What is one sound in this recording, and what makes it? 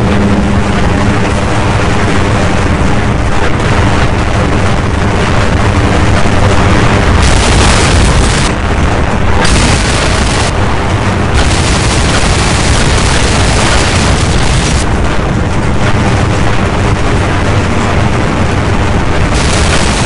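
A game gun fires rapid, loud bursts of shots.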